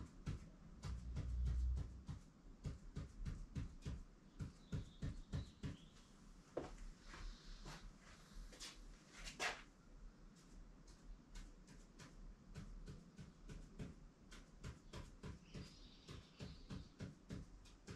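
A pen taps and scratches on a board in quick short strokes.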